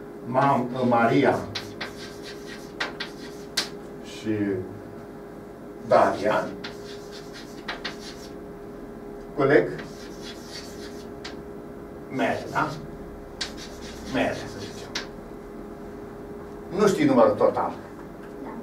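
An elderly man speaks slowly in short phrases.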